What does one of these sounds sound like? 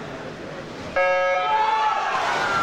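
An electronic start signal beeps once.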